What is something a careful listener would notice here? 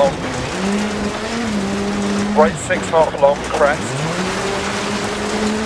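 A rally car engine drones steadily at high revs.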